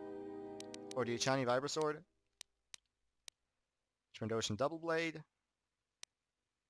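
Short interface clicks sound as a menu list scrolls.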